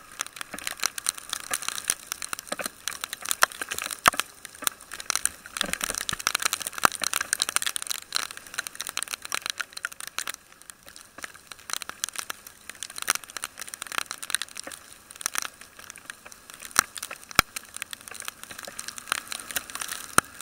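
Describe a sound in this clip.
Raindrops patter and tap against a helmet visor.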